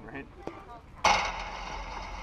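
A metal bat strikes a ball with a sharp ringing ping.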